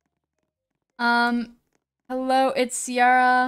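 A young woman speaks in a drawn-out, sing-song voice close to a microphone.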